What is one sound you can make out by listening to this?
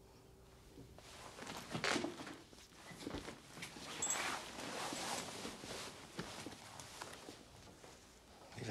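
A jacket rustles as a man pulls it on.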